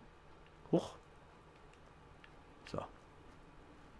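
A dog barks sharply.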